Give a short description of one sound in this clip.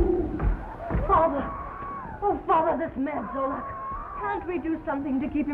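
A woman speaks softly and warmly.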